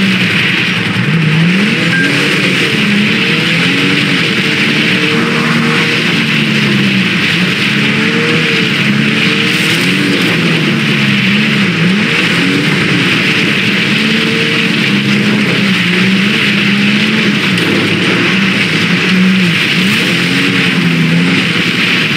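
An engine revs up and down as a vehicle drives over rough ground.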